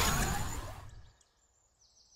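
A video game plays a burst of icy, crackling effects.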